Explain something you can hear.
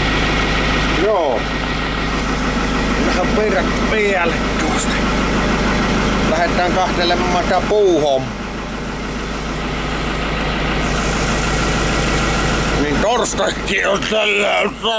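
A middle-aged man talks close up.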